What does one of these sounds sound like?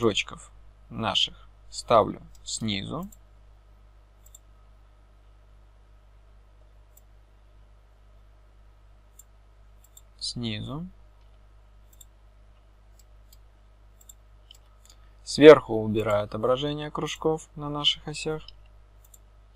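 A young man speaks calmly and close to a microphone, in short phrases with pauses.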